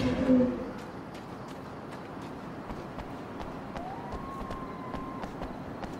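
Footsteps run on the ground.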